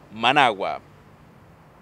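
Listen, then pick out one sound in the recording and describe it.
A man speaks briefly and clearly into a microphone close by.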